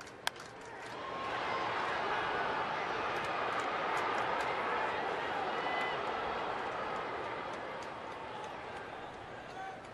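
A large crowd cheers loudly, then slowly quiets down.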